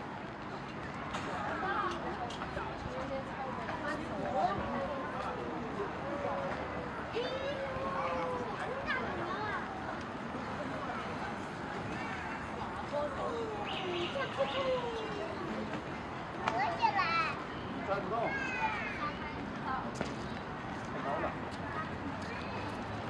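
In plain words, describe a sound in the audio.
A crowd of adults chatters softly nearby outdoors.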